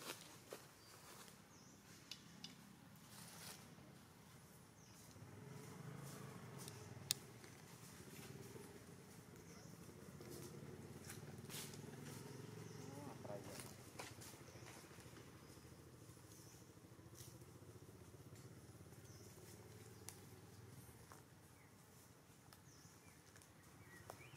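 Twigs rustle softly as monkeys shift on branches.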